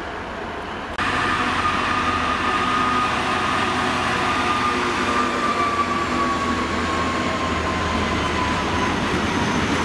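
A diesel locomotive rumbles loudly past close by.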